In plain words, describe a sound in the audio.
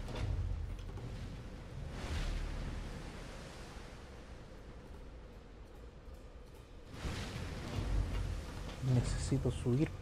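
Footsteps clank on metal grating.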